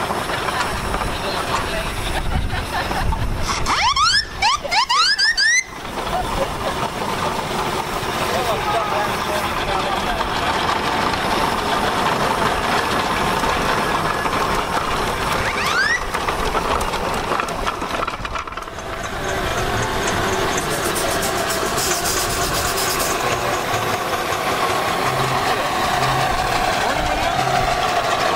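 Small steam engines chug and rumble past.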